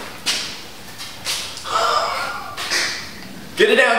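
A young man gulps a drink from a plastic cup.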